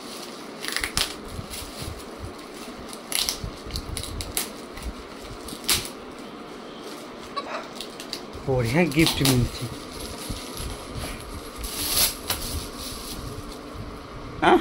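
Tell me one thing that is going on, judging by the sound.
Paper gift wrapping rustles and crinkles.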